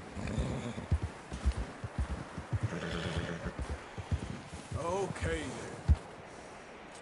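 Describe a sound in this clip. A horse gallops through deep snow with heavy, muffled hoof thuds.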